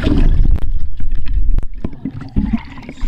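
Water splashes and bubbles close to the microphone.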